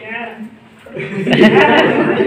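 A group of young people laughs and chatters.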